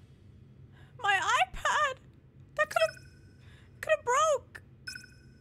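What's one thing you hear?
A young woman exclaims in a high, excited voice close to a microphone.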